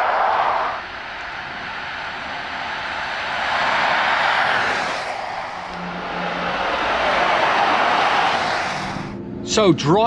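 A car drives by on a wet road, its tyres hissing as it swells and fades.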